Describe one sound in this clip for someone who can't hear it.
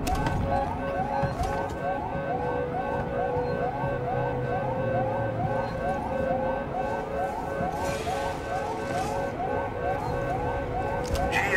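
An electronic tracker beeps in a steady, quick repeating pulse.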